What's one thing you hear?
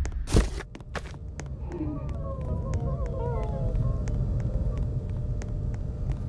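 Footsteps patter quickly on a stone path.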